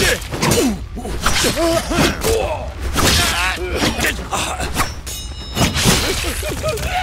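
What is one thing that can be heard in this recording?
Men grunt and shout as they fight.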